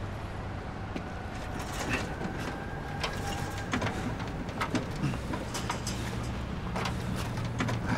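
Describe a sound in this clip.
A chain-link fence rattles as a man climbs it.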